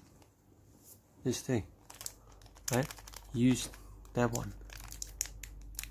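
A small plastic bag crinkles as it is handled.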